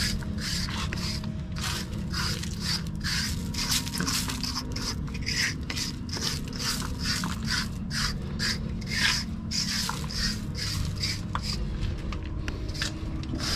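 A metal scraper scrapes across a concrete floor.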